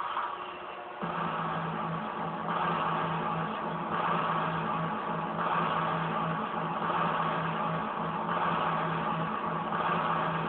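Music plays through a small television speaker.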